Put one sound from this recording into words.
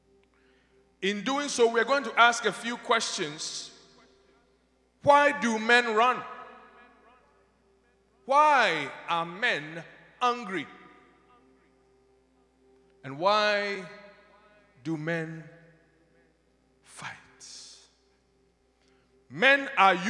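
A man speaks with passion into a microphone, in short bursts with pauses.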